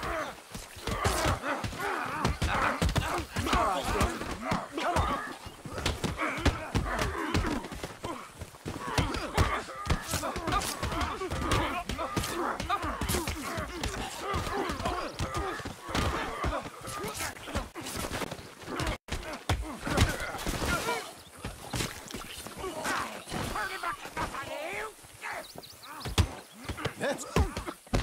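Fists thud in a brawl.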